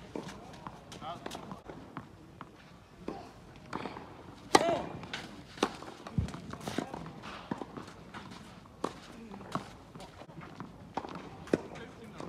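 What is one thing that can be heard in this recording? Tennis shoes scuff and slide on a clay court.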